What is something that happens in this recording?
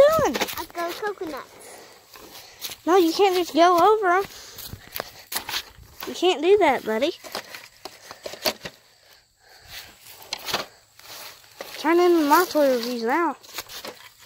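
Sandals step through grass.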